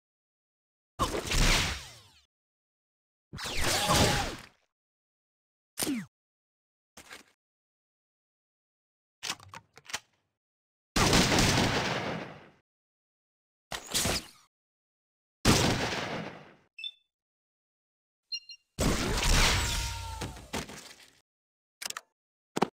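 Heavy gunshots blast one at a time, each trailing off into a long, fading roar.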